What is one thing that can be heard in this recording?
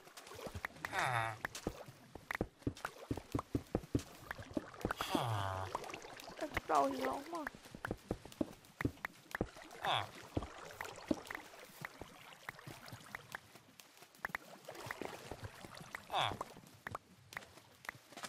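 Water splashes and sloshes as a swimmer moves through it.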